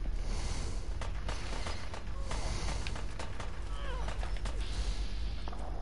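Gunshots crack and echo down a tunnel.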